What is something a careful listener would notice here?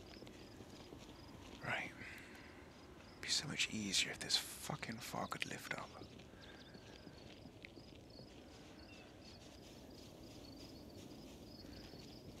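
Footsteps walk steadily.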